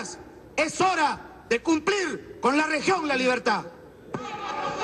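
A man speaks forcefully and loudly into a microphone.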